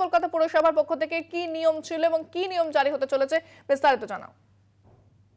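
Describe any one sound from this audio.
A young woman reads out calmly through a microphone.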